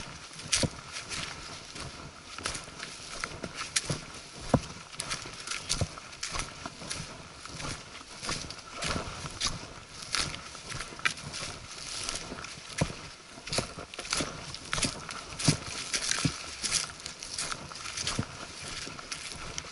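Footsteps crunch on dry twigs and leaves at a steady walking pace.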